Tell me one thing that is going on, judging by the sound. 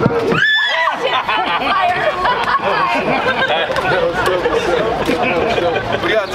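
Several adults chatter and laugh nearby outdoors.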